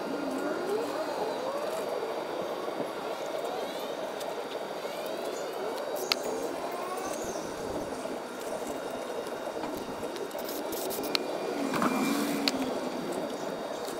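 A rag rubs and wipes inside a metal housing.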